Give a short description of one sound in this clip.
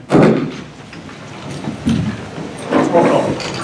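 Chairs scrape and shuffle as people sit down.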